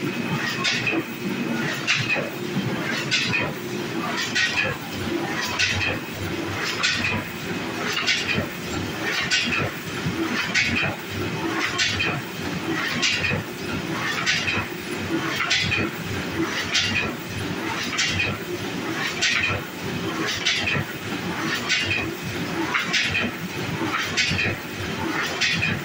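A printing press runs with a steady mechanical hum.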